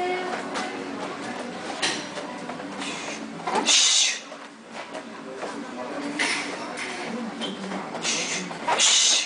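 A young woman exhales sharply with each punch.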